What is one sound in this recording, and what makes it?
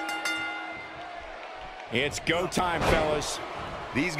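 A wrestler slams onto a wrestling ring canvas with a thud.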